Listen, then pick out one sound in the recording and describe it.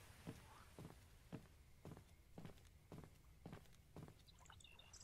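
Footsteps thud on the ground at a steady walking pace.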